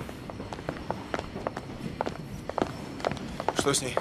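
Footsteps click on a tiled floor.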